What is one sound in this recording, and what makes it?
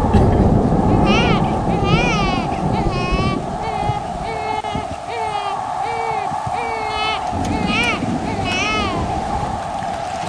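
A young woman sings.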